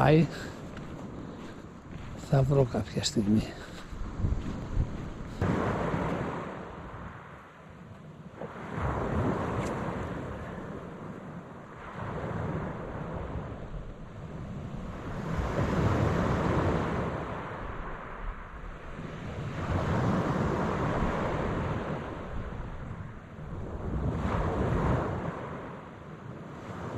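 Waves wash onto a pebble shore in slow, repeated surges.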